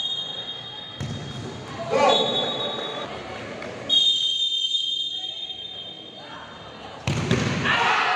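A ball is kicked with a dull thud.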